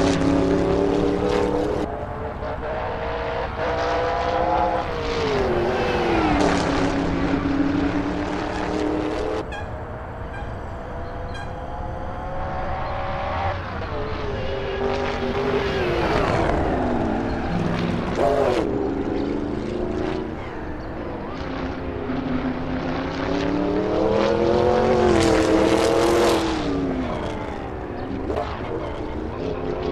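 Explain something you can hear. A racing car engine roars, revving up and down through the gears.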